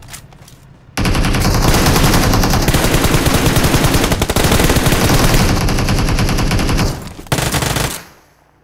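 Rapid gunfire rattles nearby.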